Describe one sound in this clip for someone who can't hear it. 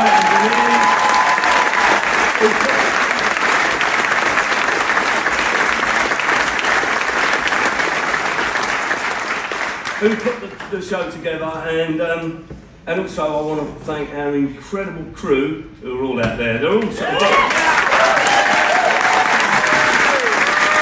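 An audience applauds and cheers loudly in a large hall.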